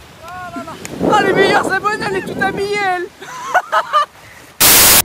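Young women shriek and laugh.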